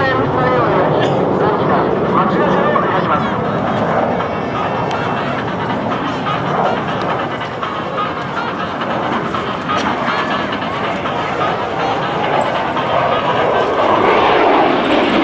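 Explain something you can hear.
A jet engine roars steadily overhead, growing louder as the jet climbs closer.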